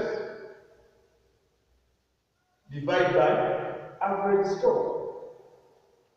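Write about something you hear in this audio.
A man speaks loudly in a room with a slight echo.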